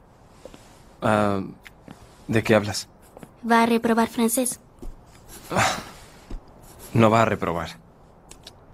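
A teenage boy speaks quietly, close by.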